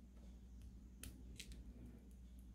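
Small plastic beads click softly against each other.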